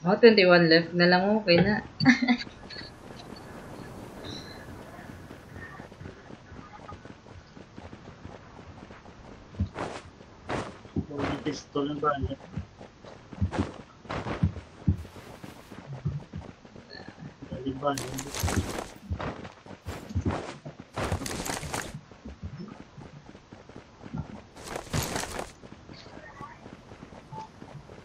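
Footsteps thud quickly over grass and dirt.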